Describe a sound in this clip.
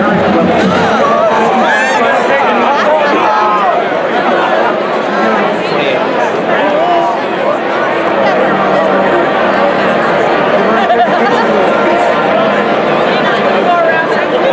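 A large stadium crowd cheers and shouts loudly all around.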